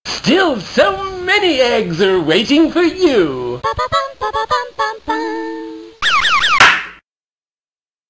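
A pinball machine plays a cheerful electronic jingle.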